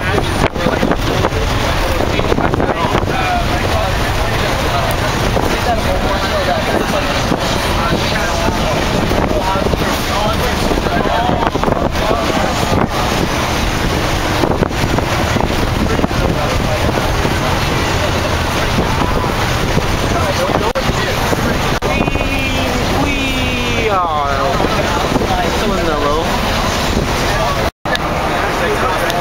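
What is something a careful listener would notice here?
Many young people chatter and shout inside a rattling bus.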